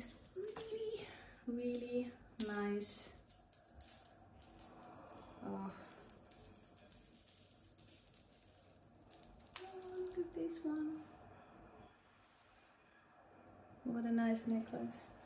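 A woman speaks softly and close by.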